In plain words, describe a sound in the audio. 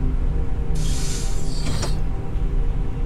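A sliding door hisses open.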